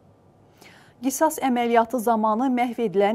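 A young woman speaks clearly and calmly into a microphone, like a newsreader.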